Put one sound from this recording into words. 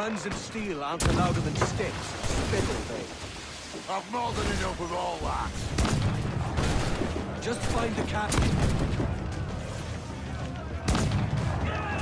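Cannons boom in loud blasts.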